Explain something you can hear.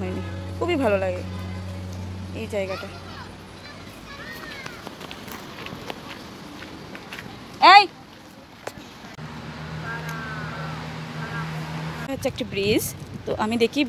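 A young child squeals and shrieks in high bursts nearby.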